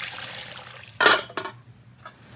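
A metal lid clanks against a pot.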